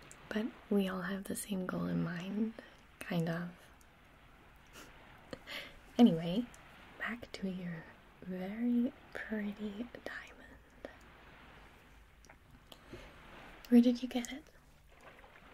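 A young woman speaks softly and closely into a microphone.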